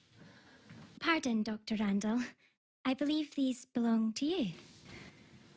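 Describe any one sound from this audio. A young woman speaks quietly and tearfully close by.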